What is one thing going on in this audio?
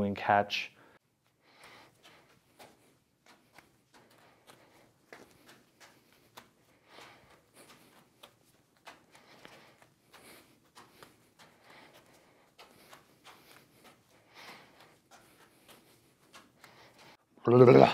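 Juggling balls softly smack into hands as they are caught.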